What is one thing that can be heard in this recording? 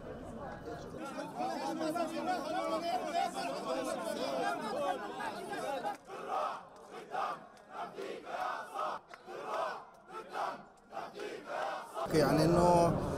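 A large crowd of men chants loudly outdoors in rhythmic bursts.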